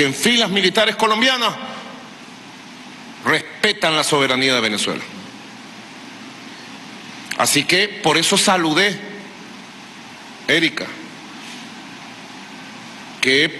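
A middle-aged man speaks slowly and firmly into a microphone, with pauses, in a large echoing hall.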